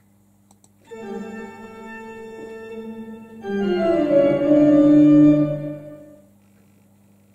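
Music plays through a small speaker.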